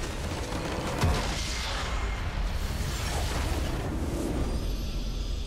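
A game building shatters and collapses with a loud crash.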